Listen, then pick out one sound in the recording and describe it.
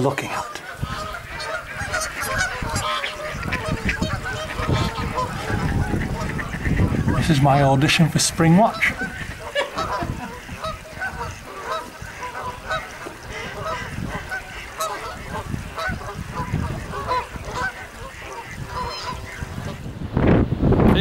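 Ducks and geese call and quack across the water.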